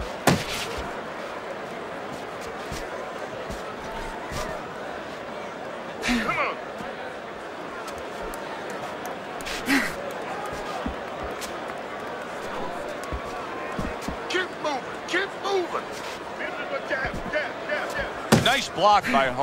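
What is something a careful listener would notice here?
Punches thud sharply against a body.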